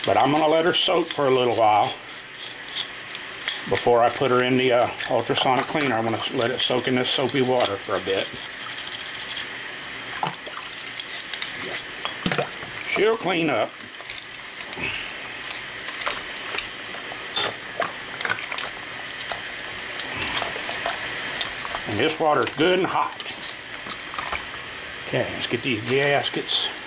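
Water splashes and sloshes in a bucket.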